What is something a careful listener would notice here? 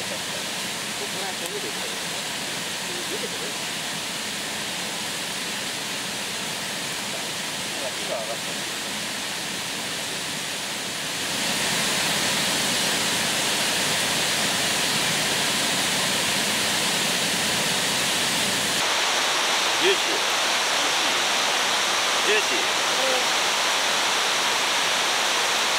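Meat sizzles steadily over a charcoal grill.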